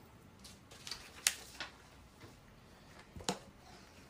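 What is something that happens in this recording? Papers rustle and shuffle as a stack is handled.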